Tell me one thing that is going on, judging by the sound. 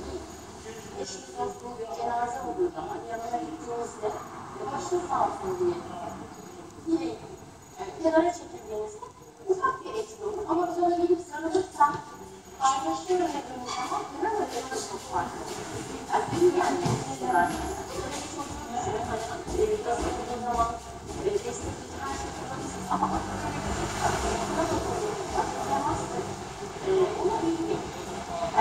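A woman speaks with animation through a television loudspeaker.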